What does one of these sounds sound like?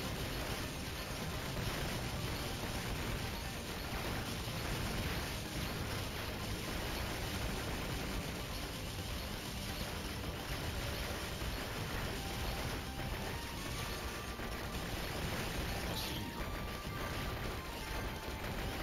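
Electronic video game music plays.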